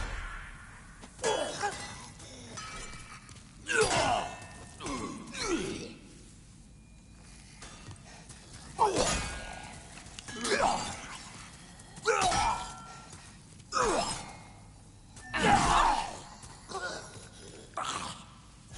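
Heavy footsteps crunch on stone.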